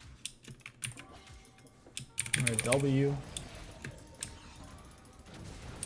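Magic spells zap and crackle in quick bursts.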